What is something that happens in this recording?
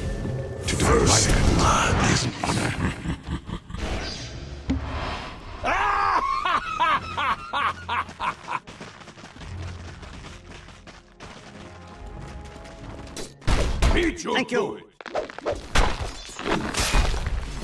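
Weapons clash and strike in a skirmish.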